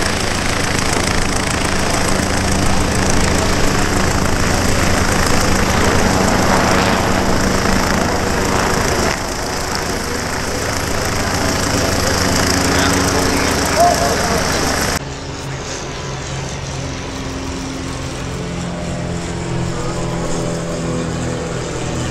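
An airship's engines drone steadily overhead, then grow fainter.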